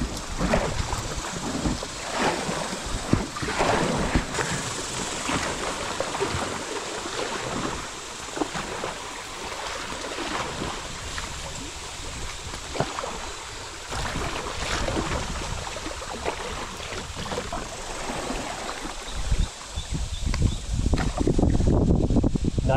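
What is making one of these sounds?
River water rushes and splashes around a kayak.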